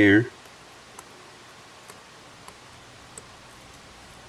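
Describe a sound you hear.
Metal tweezers tick softly against small plastic parts.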